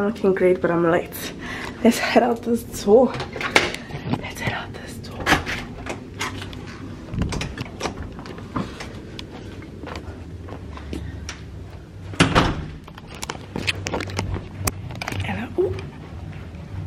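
Knocks and rustles of handling sound close by.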